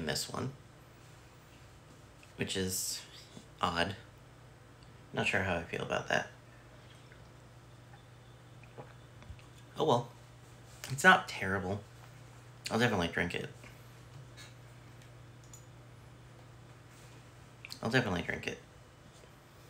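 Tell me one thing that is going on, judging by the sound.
A young man speaks calmly and close up, in short bursts.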